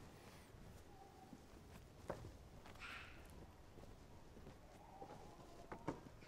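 Footsteps crunch on cobblestones.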